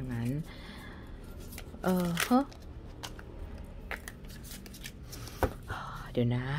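Playing cards shuffle and flick against each other.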